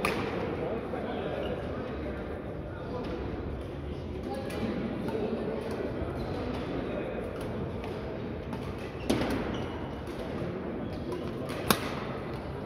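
Rackets smack shuttlecocks in a large echoing hall.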